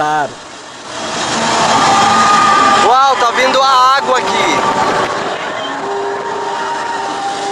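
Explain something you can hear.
Water rushes and roars down a waterfall.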